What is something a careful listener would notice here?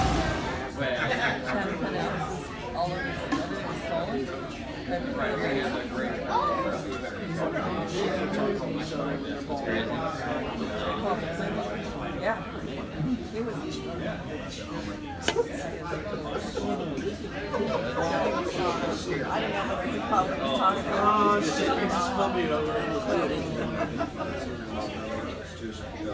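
A large outdoor crowd chatters and cheers in the distance.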